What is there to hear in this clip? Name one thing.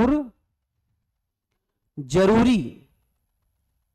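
A young man speaks clearly and with animation into a close microphone.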